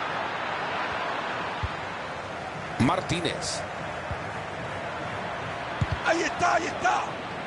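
A stadium crowd murmurs and roars steadily in the background.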